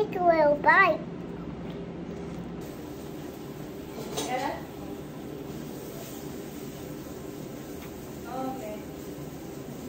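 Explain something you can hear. A young girl speaks in a high, lively voice close by.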